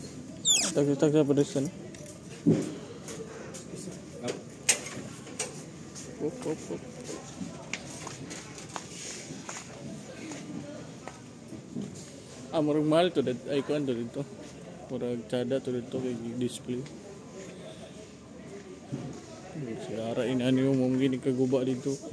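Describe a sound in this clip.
A man talks close by, in a lively way.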